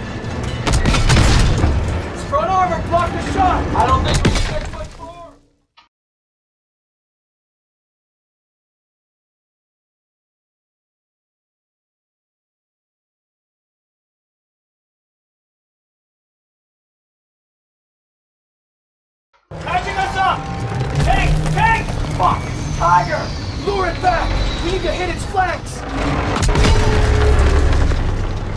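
Gunfire and explosions boom loudly.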